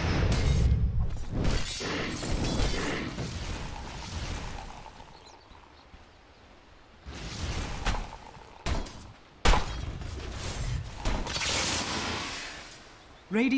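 Magic spells crackle and burst with loud whooshes.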